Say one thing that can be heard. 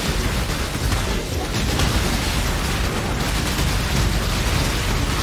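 Rapid magical blasts crackle and boom without pause.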